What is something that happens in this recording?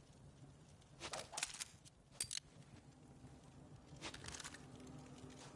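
Short metallic clicks and clatters sound as a weapon is handled.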